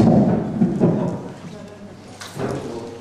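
An elderly man speaks loudly through a microphone in a hall with echo.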